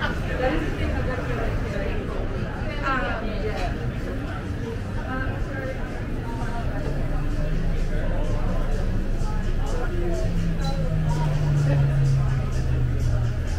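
People chat at outdoor tables nearby.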